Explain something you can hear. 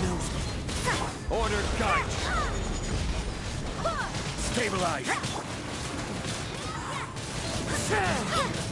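Magic blasts crackle and boom again and again.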